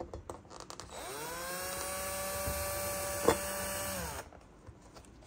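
A cordless drill whirs, driving a screw into wood.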